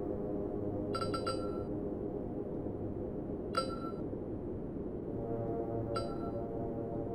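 A short bright chime rings several times.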